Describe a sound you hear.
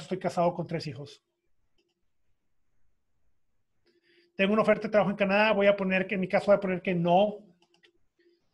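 A man speaks calmly through a microphone, close by.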